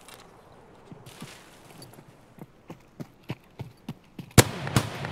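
Footsteps crunch through grass and undergrowth.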